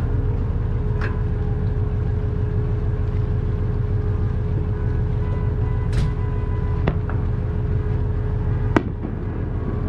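Fireworks burst with loud bangs across the water.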